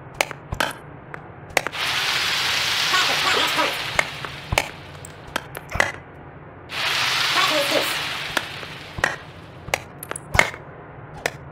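A tennis ball is struck with sharp pops.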